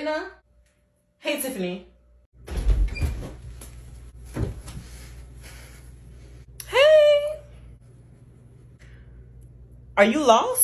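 A young person speaks with animation, close by.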